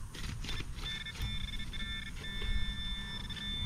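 A metal detector pinpointer buzzes steadily.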